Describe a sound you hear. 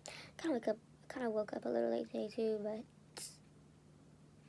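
A young woman speaks close to a microphone, with animation.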